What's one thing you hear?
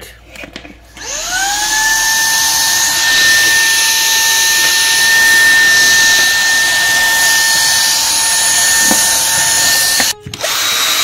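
A handheld vacuum cleaner whirs steadily.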